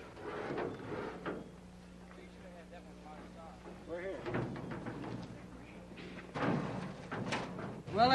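A metal canoe scrapes as it slides down a concrete ramp.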